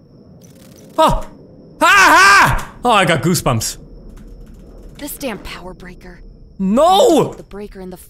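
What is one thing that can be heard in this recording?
A young man shouts and yells in fright close to a microphone.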